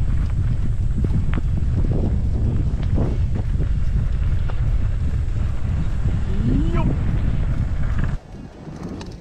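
Wind rumbles loudly against a moving bicycle rider.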